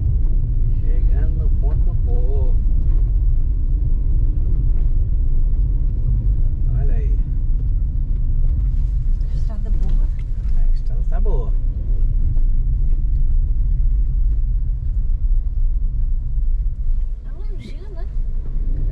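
A car engine hums while driving.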